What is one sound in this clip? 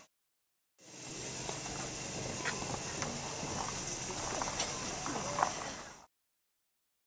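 A distant steam train rumbles along the track.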